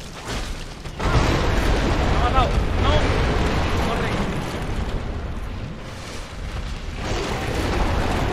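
A huge creature roars and growls.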